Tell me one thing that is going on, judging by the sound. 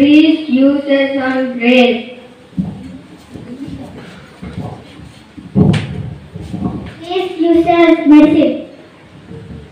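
A boy speaks loudly through a microphone and loudspeaker.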